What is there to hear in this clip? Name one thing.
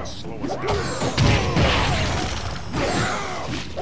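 Heavy punches and kicks land with thuds.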